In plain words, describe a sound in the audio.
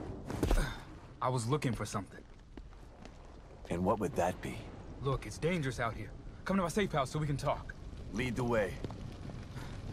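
A second man speaks in a low, calm voice.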